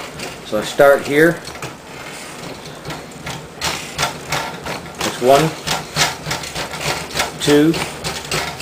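A spinning machine wheel thumps in a steady, quick rhythm.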